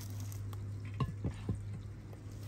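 A metal pot lid clinks onto a pot.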